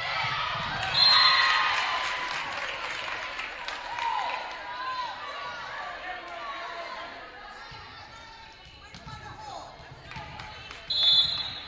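A referee blows a short, shrill whistle.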